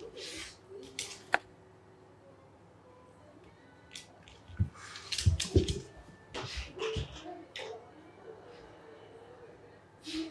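A small dog scuffles and tugs at a cloth on a wooden floor.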